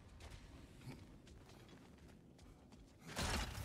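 Heavy footsteps crunch on snow.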